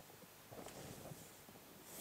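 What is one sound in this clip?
A pencil scratches a line on paper.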